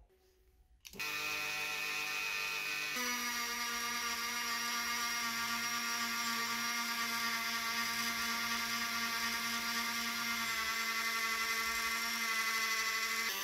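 A small rotary tool whines steadily at high speed.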